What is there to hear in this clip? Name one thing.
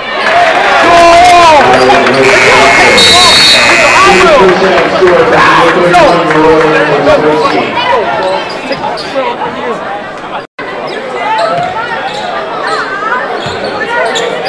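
A crowd of spectators shouts and cheers loudly in a large echoing gym.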